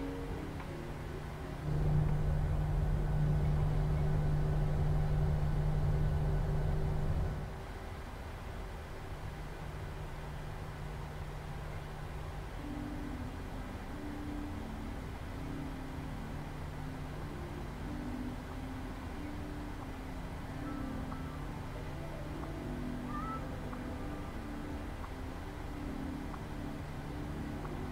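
A jet engine hums steadily as a plane taxis, louder for a few seconds early on.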